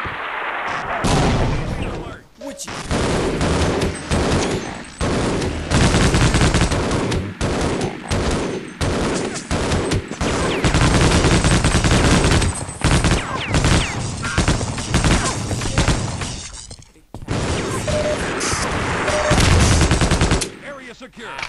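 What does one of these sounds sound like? A machine gun fires rapid, loud bursts.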